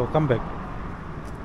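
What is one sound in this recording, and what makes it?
A young man speaks briefly, close by.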